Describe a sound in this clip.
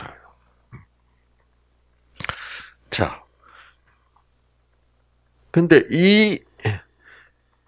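An elderly man speaks through a microphone in short bursts, with pauses.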